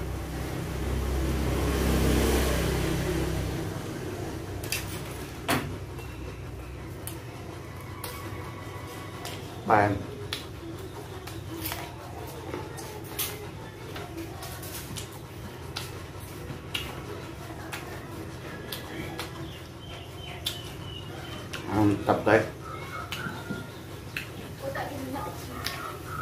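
A man chews food noisily close to a microphone.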